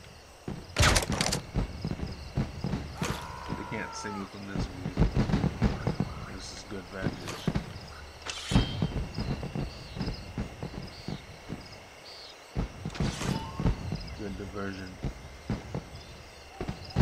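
Footsteps thud quickly across wooden rooftops.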